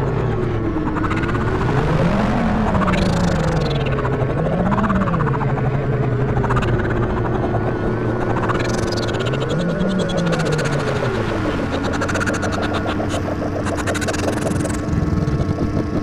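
Sharp high electronic sweeps rise and fall over the droning tones.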